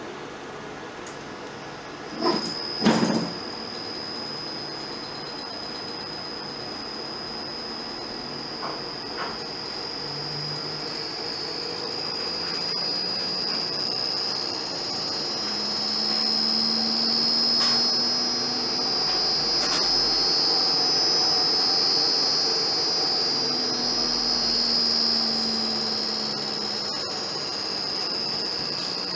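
An electric motor hums and whines steadily.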